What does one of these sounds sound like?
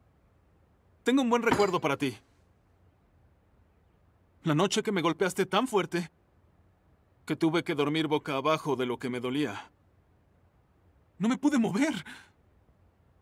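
A young man speaks calmly and earnestly, close by.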